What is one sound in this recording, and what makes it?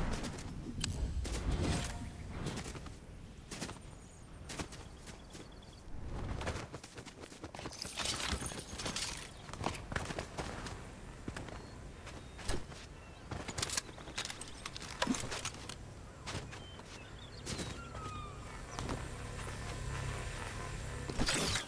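Footsteps patter quickly over grass and sand.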